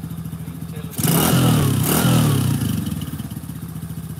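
A small engine revs loudly twice and settles back.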